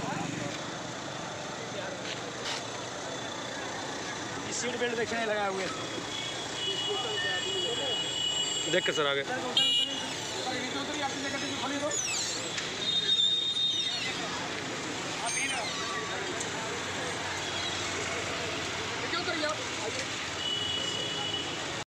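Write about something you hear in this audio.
A crowd of men talk and shout nearby outdoors.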